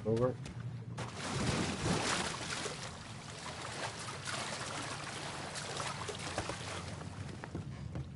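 Water splashes and sloshes as someone swims.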